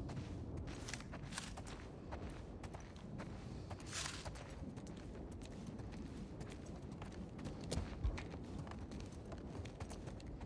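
Footsteps crunch slowly over a gritty floor.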